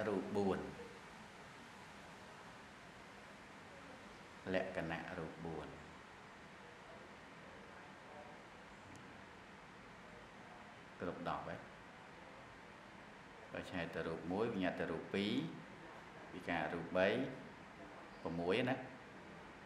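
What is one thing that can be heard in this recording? A middle-aged man speaks calmly into a microphone, with long pauses between phrases.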